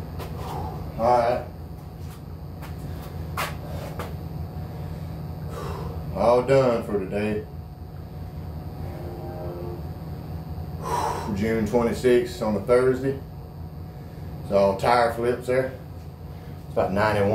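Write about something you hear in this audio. A middle-aged man speaks calmly close by, in short bursts.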